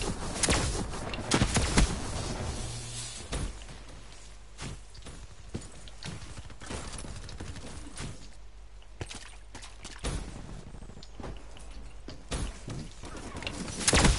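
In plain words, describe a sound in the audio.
A rifle fires in short, sharp bursts.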